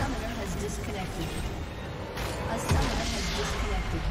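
Game sound effects of fighting clash and crackle.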